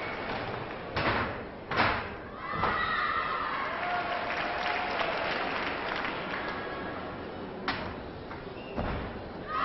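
A gymnast's feet thud on a springy floor on landing.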